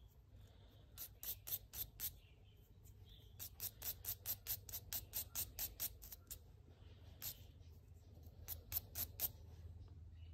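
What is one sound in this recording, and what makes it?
A wire brush scrubs a small metal part in quick, rhythmic strokes.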